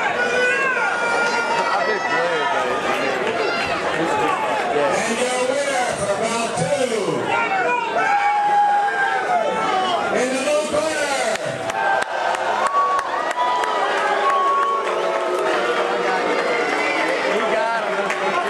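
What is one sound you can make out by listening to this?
A crowd of people talks and calls out loudly all around.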